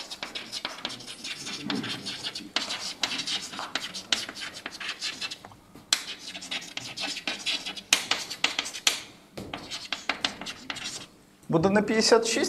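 Chalk taps and scratches quickly on a blackboard.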